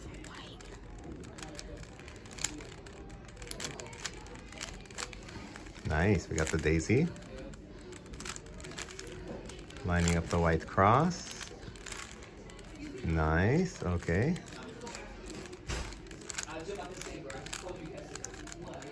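A plastic puzzle cube clicks and clacks as its layers are twisted quickly.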